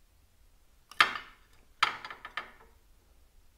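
A metal cover clinks as hands work it loose.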